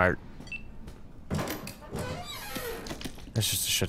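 A small metal safe door clicks and swings open.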